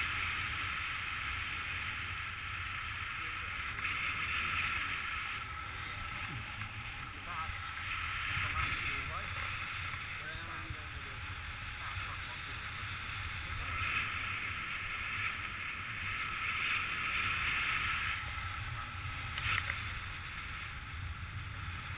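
Wind rushes steadily past outdoors, buffeting in gusts.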